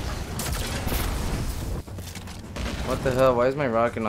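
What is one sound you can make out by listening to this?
An explosion booms in a game.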